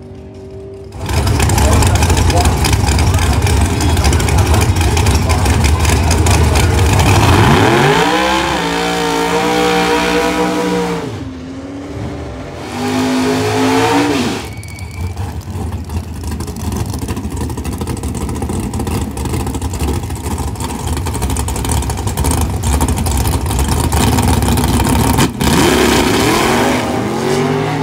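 A race car engine roars loudly and revs up and down.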